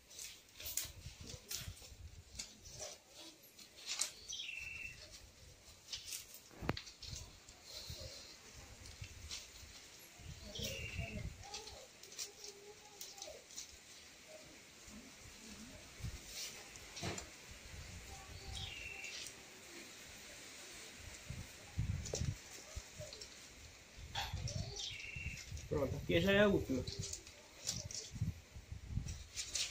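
Palm leaf strips snap and click against each other.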